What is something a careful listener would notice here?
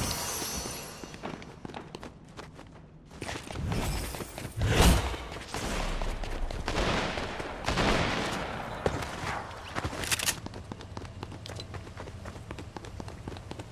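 Quick footsteps patter on hard ground and grass.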